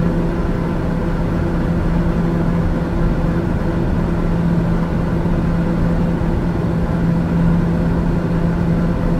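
An aircraft engine drones steadily with a low hum.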